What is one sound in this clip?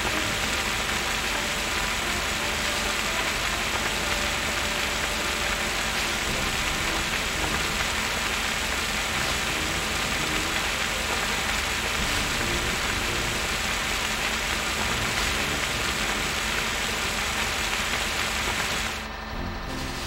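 Water sprays from a fire hose with a steady hiss.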